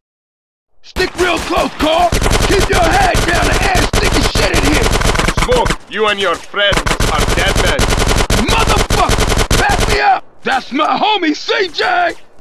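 Guns fire in rapid bursts, loud and close.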